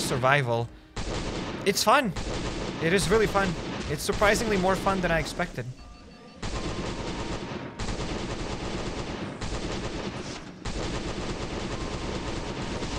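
Video game gunfire and combat noises play steadily.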